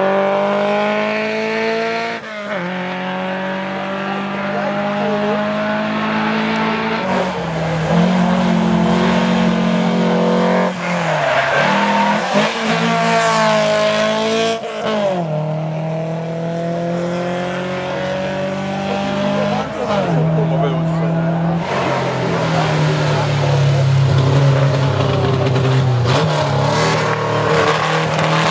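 Classic rally cars rev hard and shift gears as they accelerate one after another through hairpin bends.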